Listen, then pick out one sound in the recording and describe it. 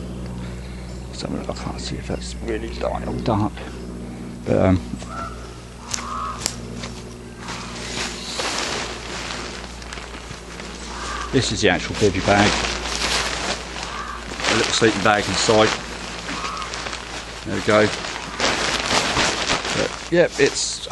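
Nylon fabric rustles and crinkles as it is handled close by.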